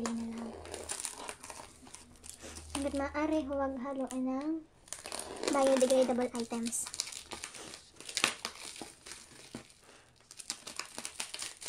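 Plastic wrap crinkles under hands.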